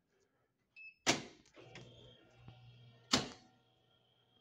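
A metal door latch clanks loudly as a door opens and swings shut.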